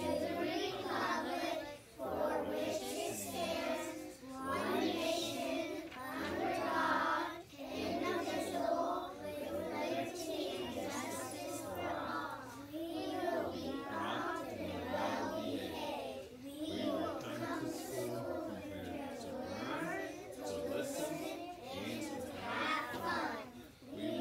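A group of young children chant together in unison, in a room with some echo.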